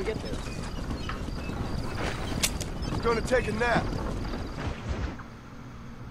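Wooden wagon wheels rumble and creak as a wagon rolls.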